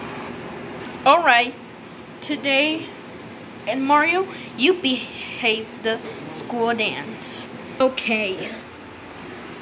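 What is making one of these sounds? A young girl's voice speaks brightly through a television speaker.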